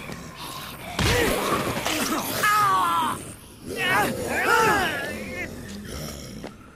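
A man grunts and groans loudly while struggling with an attacker.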